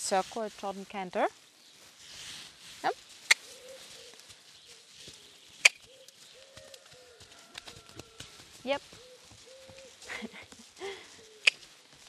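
A young woman speaks calmly to a horse.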